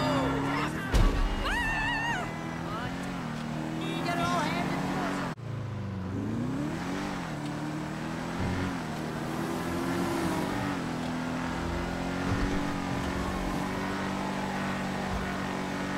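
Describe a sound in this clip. A car engine hums and revs as the car drives along a road.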